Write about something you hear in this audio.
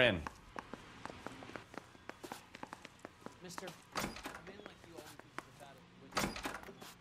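Footsteps tap on a hard floor indoors.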